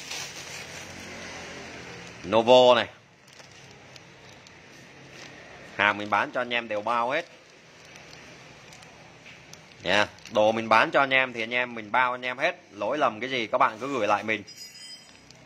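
A plastic bag crinkles softly in a hand.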